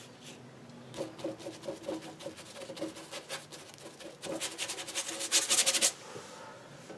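A stick of pastel scrapes and scrubs rapidly across paper.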